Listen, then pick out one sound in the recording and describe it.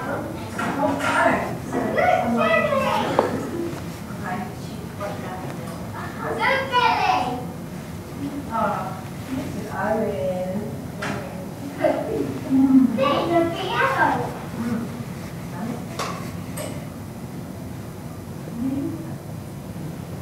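A man talks calmly, heard through a loudspeaker in a room.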